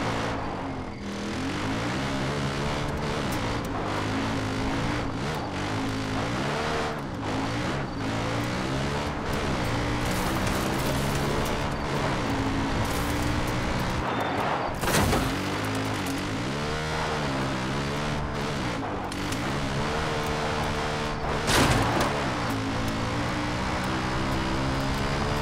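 A quad bike engine hums steadily and revs up and down.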